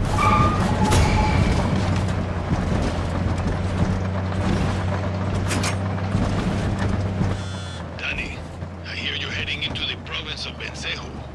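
Tyres rumble over a rough dirt road.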